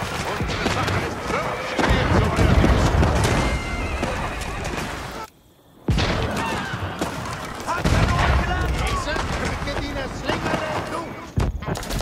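Weapons clash and crash in a noisy battle.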